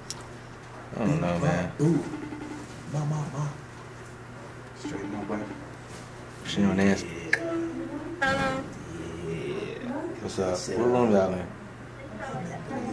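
A voice talks through a phone's loudspeaker during a call.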